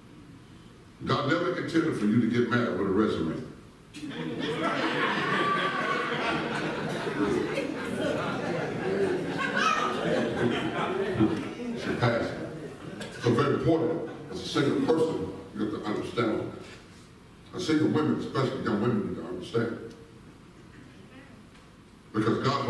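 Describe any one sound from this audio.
A man preaches with animation through a loudspeaker in a large echoing hall.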